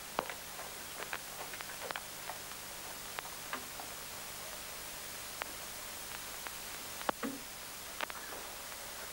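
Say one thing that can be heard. A horse's hooves clop slowly on dirt.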